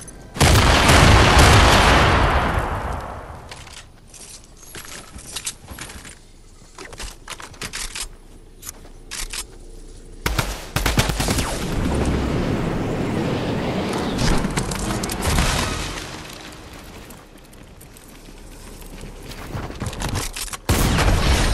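Building pieces snap into place with quick clicks and thuds.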